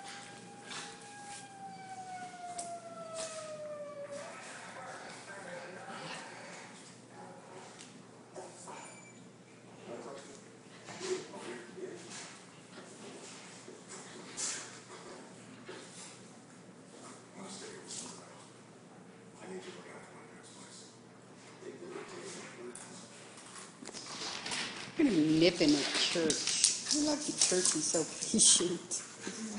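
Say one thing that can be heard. Dog claws scrabble and click on a hard floor.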